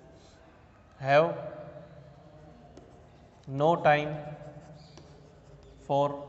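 A man speaks loudly and clearly nearby, as if reading aloud.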